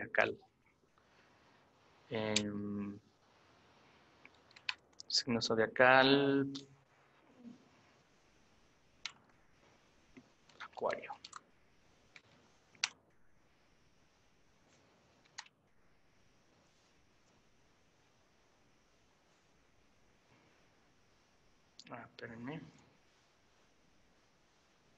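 Computer keys click as someone types.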